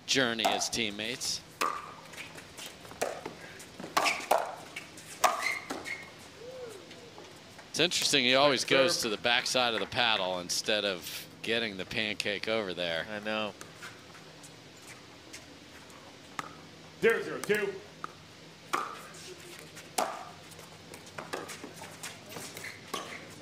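A paddle strikes a plastic ball with sharp pops.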